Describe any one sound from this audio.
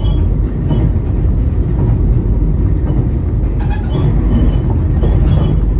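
A train's wheels clatter over rail joints.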